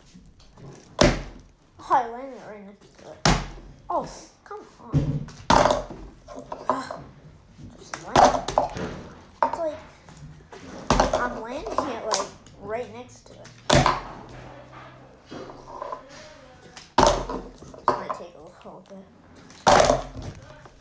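A plastic water bottle thuds onto a wooden table again and again.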